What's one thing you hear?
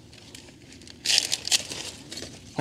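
A knife cuts through thick stalks.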